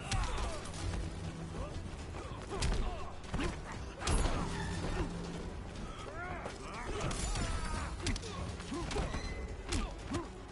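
Heavy punches and kicks land with loud, sharp thuds.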